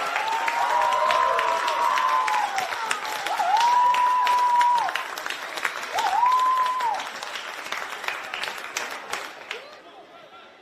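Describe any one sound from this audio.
Men shout and cheer excitedly outdoors.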